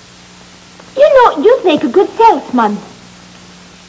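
An elderly woman speaks warmly and close by.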